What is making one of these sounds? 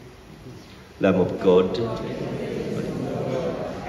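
A man speaks steadily into a microphone in an echoing hall.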